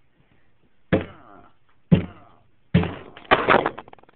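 Something knocks against a hard surface.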